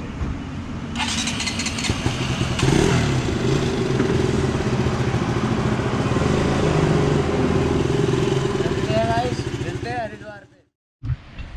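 A motorcycle engine runs and revs close by.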